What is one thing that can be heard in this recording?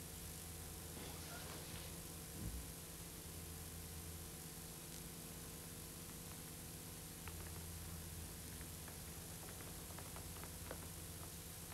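Small objects click and tap softly on a wooden floor.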